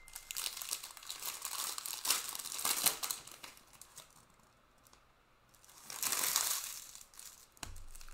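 A foil wrapper crinkles as a card pack is torn open close by.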